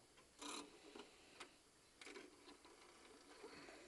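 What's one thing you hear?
Fingers tap and rub on a metal clock face.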